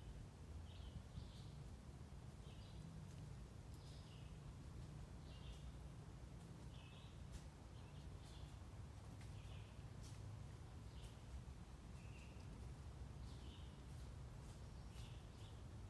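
A deer's hooves rustle through dry leaves on the forest floor.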